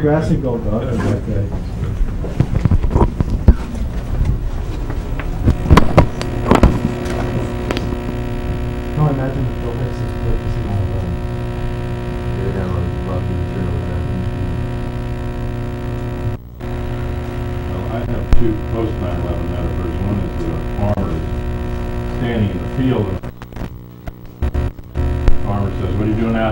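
A man talks nearby in a room.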